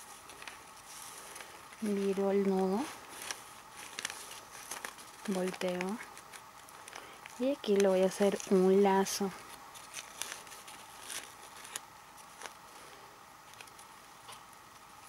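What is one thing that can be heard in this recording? Paper and ribbon rustle softly.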